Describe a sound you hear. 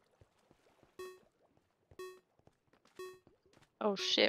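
Short electronic beeps sound once a second as a game countdown ticks.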